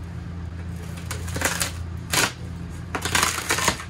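Paper tears from a wall.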